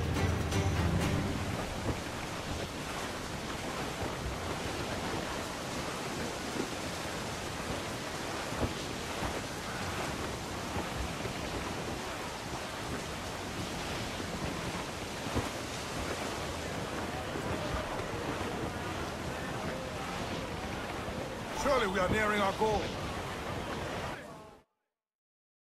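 Stormy sea waves crash and roar steadily.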